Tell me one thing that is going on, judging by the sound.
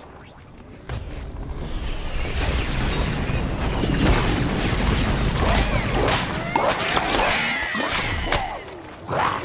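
Crackling electric blasts fire and hit in rapid bursts.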